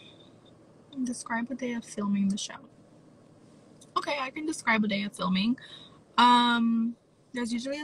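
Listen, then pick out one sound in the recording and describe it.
A young woman talks casually, close to a phone microphone.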